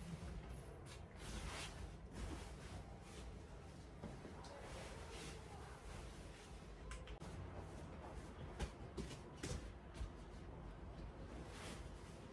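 A duvet and sheets rustle and swish as they are shaken and spread.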